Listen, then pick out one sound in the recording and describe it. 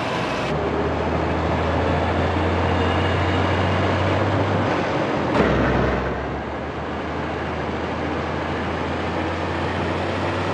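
A truck engine drones steadily at speed.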